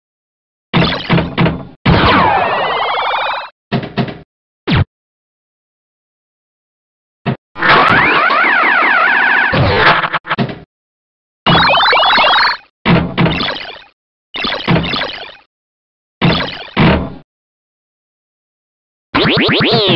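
Electronic pinball game sounds chime, beep and sweep in bursts.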